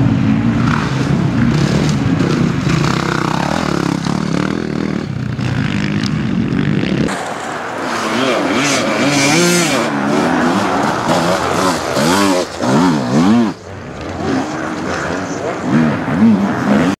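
Dirt bike engines rev loudly, rising and falling in pitch.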